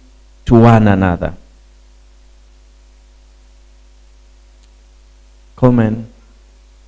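A middle-aged man speaks slowly and deliberately through a microphone, with long pauses.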